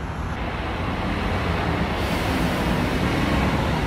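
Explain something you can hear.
A young woman speaks close to the microphone, muffled through a face mask.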